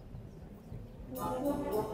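A brass band starts to play loudly outdoors.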